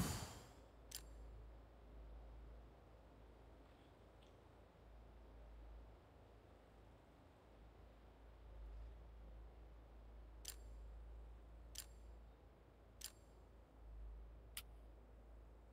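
Sharp interface clicks sound as buttons are tapped.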